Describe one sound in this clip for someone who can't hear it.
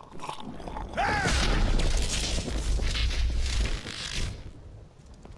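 Electricity crackles and booms loudly.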